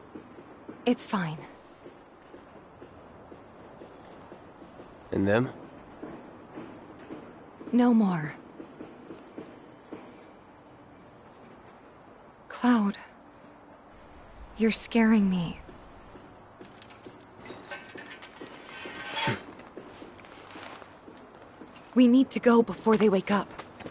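A young man speaks in a low, flat voice.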